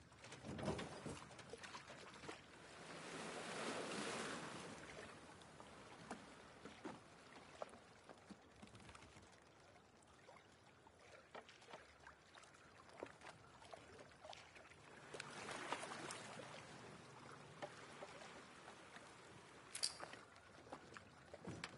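Water laps and sloshes gently against a small boat, with slow swells of washing water.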